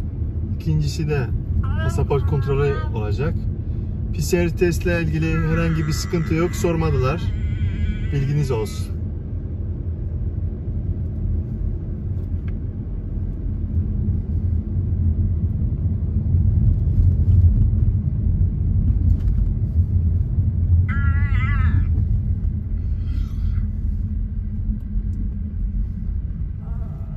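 A car engine hums and tyres rumble steadily on the road, heard from inside the car.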